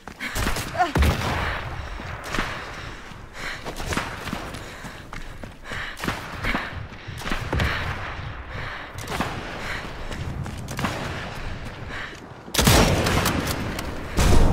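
Gunshots crack in bursts nearby.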